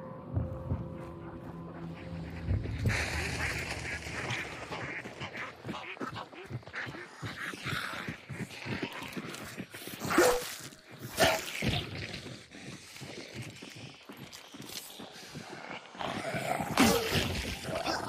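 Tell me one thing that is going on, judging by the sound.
Footsteps thud steadily on wooden boards and dirt.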